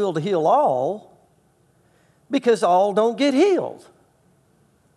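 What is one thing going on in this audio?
A middle-aged man speaks expressively into a microphone.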